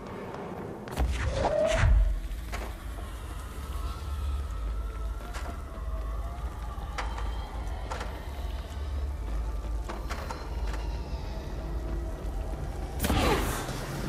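A furnace roars with a deep, steady rumble.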